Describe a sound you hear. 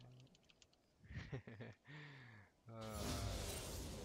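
A bright video game chime rings out as a level is gained.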